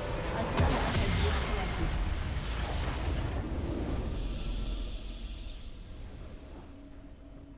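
A loud game explosion rumbles and roars, then fades.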